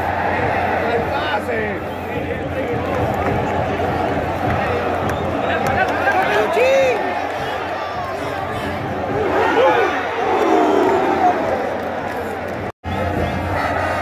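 A huge stadium crowd roars and chants loudly throughout.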